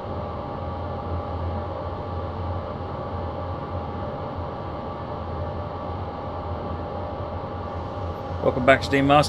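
A train engine hums steadily as the train rolls along the tracks.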